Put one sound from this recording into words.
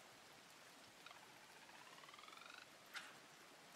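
A fishing reel whirs as a line is cast.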